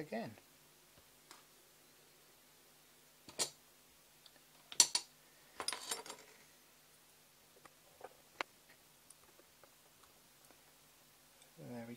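Light plastic and carbon parts clack and tap onto a hard tabletop.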